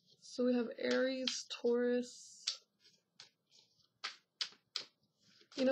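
Playing cards are shuffled with soft flicking clicks.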